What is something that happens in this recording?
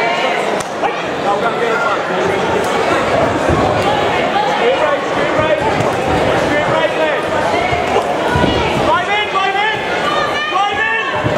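A crowd of men and women shout and cheer loudly in a large echoing hall.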